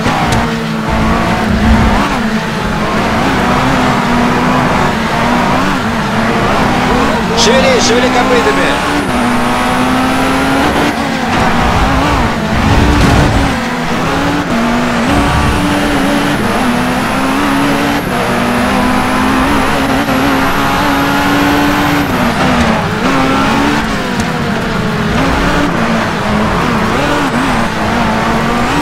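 A racing car engine roars steadily, its pitch rising and falling as it shifts gears.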